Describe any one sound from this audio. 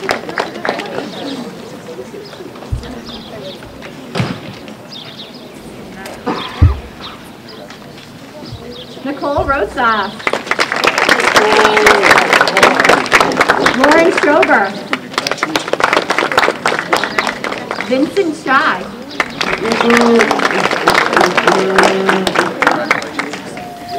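A woman speaks calmly through a microphone and loudspeaker outdoors.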